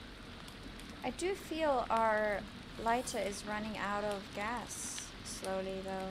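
A woman talks with animation into a close microphone.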